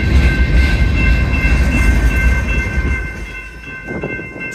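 A freight train rumbles past on the tracks and moves away.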